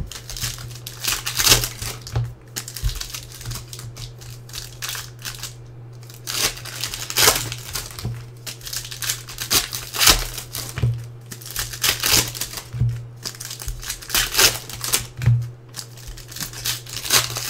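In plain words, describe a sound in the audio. Plastic wrappers crinkle and tear in hands.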